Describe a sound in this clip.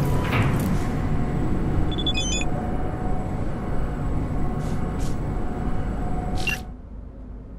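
An elevator hums steadily as it rides.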